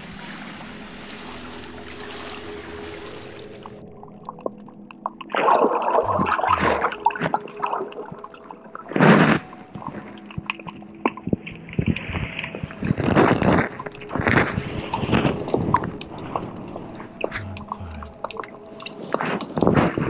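Water swirls and murmurs in muffled underwater bursts.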